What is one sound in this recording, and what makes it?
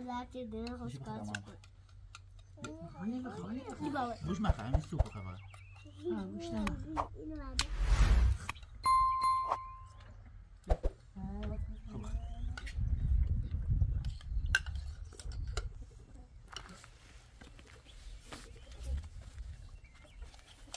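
Spoons clink against plates.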